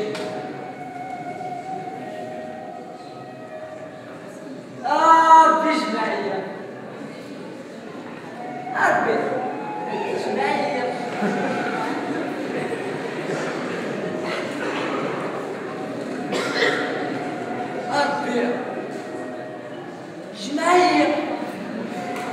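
Young men speak loudly and with animation, in a hall with a slight echo.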